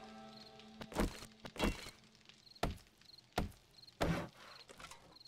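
A wooden club thuds hard against something several times.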